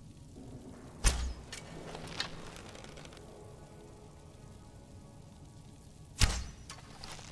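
A bow looses an arrow with a sharp twang.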